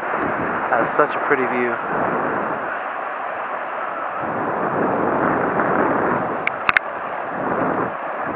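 Wind rushes loudly past a moving motorcycle rider.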